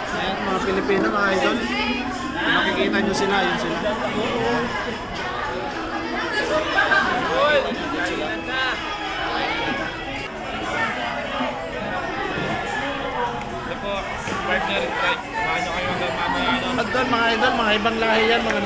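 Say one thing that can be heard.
Many people chatter in a busy room.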